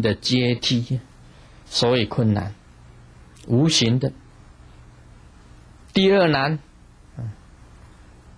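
A middle-aged man speaks calmly into a microphone in short phrases with pauses.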